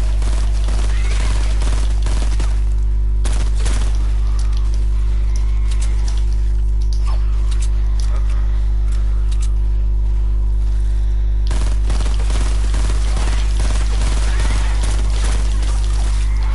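Rapid gunshots rattle in bursts.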